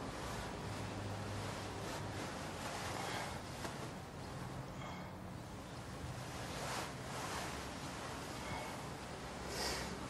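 Bedding rustles as a man shifts and turns over under a blanket.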